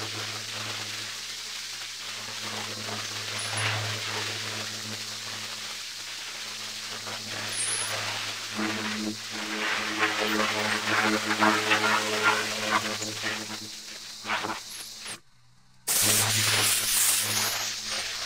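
A pressure washer engine hums steadily close by.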